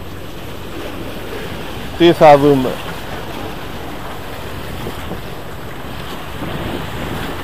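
Water laps against rocks close by.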